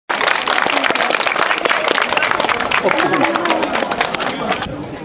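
A crowd claps hands rapidly outdoors.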